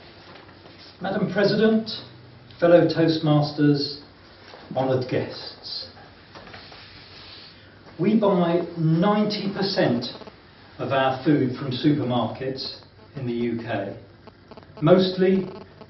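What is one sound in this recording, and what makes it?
A middle-aged man speaks to an audience in a small room, heard from a distance with a slight echo.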